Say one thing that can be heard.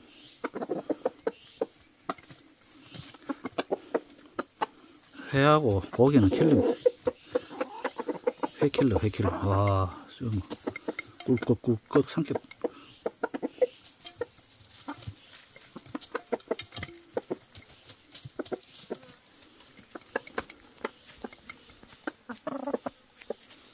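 Chickens peck rapidly at food in a bowl.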